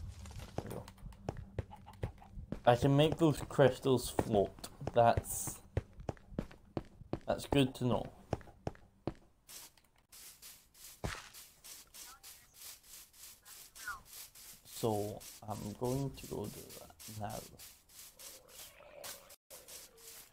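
Footsteps tap steadily on grass and stone.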